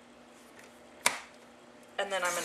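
A paper trimmer blade snaps down and slices through card.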